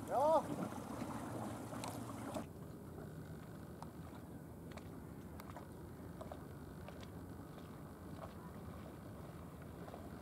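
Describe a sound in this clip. A distant motorboat engine hums steadily across open water.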